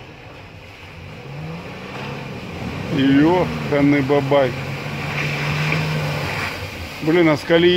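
An car engine hums as the car drives slowly closer through mud.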